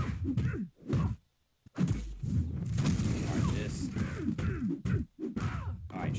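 Heavy punches and blows land in a fight between two monsters.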